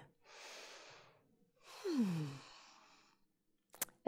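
A young woman breathes out slowly and deeply.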